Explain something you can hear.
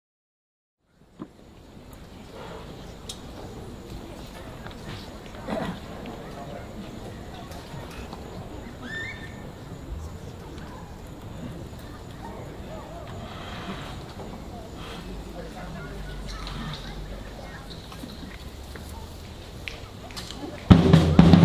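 An outdoor audience murmurs quietly.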